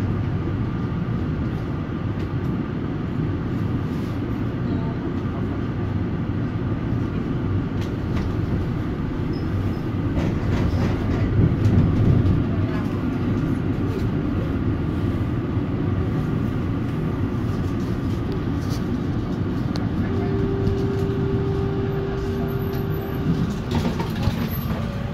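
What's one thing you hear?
A tram rumbles and hums steadily from inside as it rolls along.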